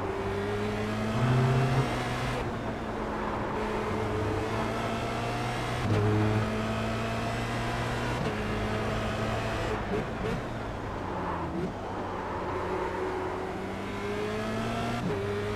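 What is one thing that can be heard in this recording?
A racing car engine whines and revs up and down through gear changes.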